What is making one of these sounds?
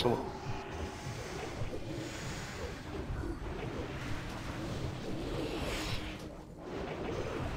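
Magic spells crackle and boom in a busy fantasy battle.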